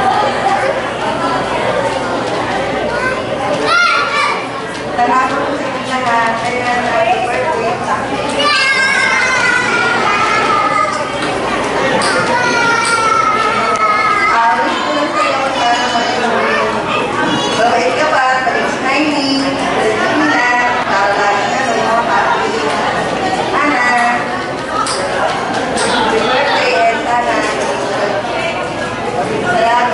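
Children chatter and call out nearby.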